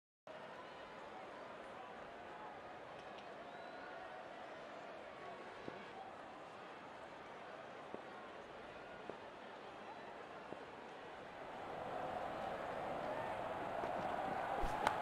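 A large crowd murmurs steadily in a stadium, growing louder toward the end.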